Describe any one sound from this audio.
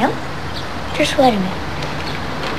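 A boy speaks briefly, close by.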